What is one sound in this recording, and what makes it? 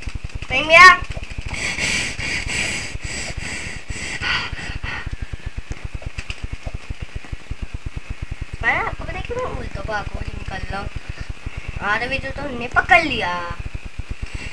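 A young boy talks excitedly close to a microphone.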